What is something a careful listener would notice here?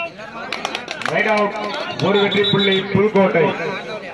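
A crowd cheers loudly as a point is scored.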